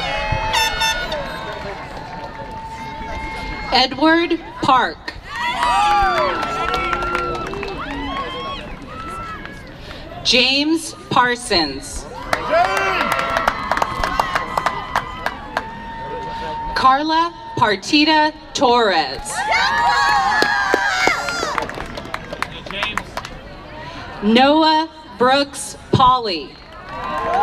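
A crowd cheers and shouts between the names.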